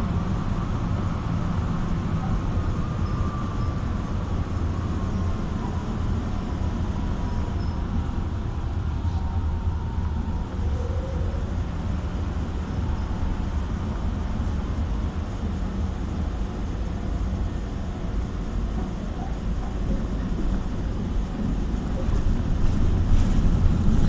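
A car engine hums steadily with a low rumble.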